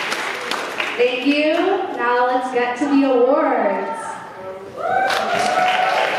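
A young woman sings through a microphone on a loudspeaker in a large hall.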